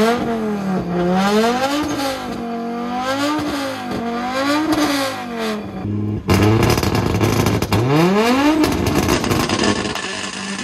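A rally car engine revs loudly up and down, close by.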